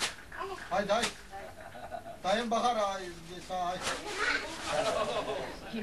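Men talk and laugh nearby.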